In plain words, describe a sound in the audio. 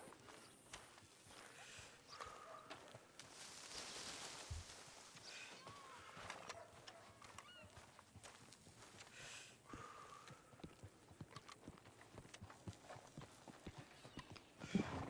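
Boots thud softly on dirt and wooden boards in steady footsteps.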